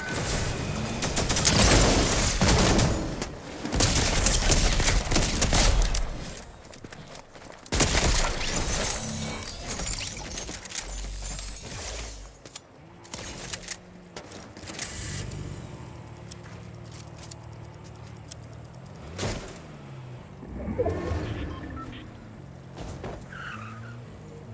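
A car engine hums and revs in a video game.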